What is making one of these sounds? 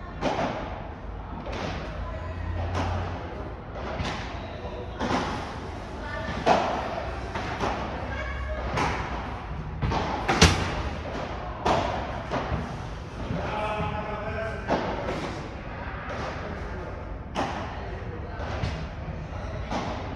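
Paddle rackets hit a ball back and forth with sharp pops.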